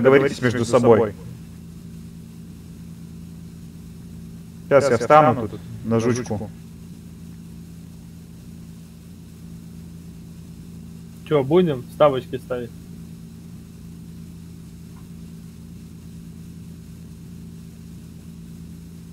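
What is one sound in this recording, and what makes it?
A car engine idles with a low, steady hum.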